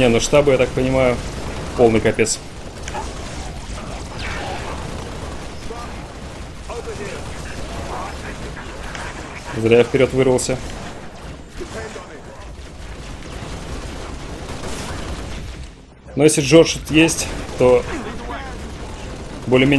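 Energy weapons fire in rapid bursts amid a gunfight.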